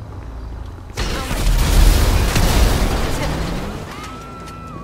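A car explodes with a loud roaring blast.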